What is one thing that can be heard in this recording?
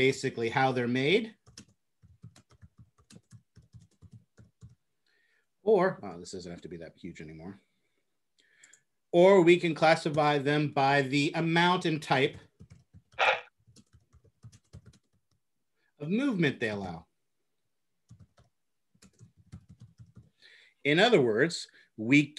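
A man speaks calmly over an online call, lecturing with pauses.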